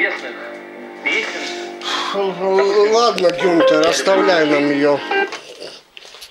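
Music with a singing voice plays from a television loudspeaker.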